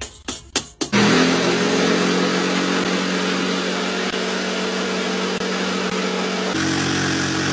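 A jigsaw buzzes while cutting wood.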